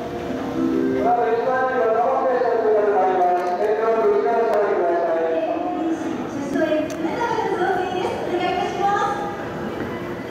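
A large crowd sings together loudly in an echoing hall.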